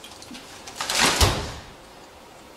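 An umbrella snaps open.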